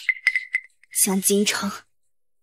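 A young woman speaks coldly and angrily, close by.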